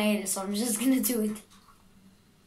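A young boy speaks up close with animation.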